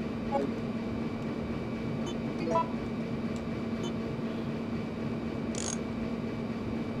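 Short electronic beeps sound as a game menu selection moves.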